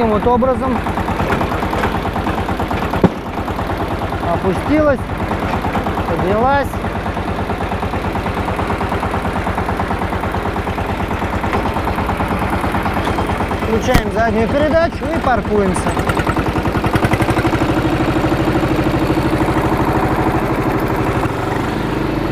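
A small tractor engine chugs steadily nearby.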